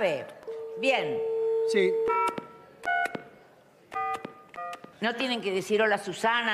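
An elderly woman speaks animatedly into a phone.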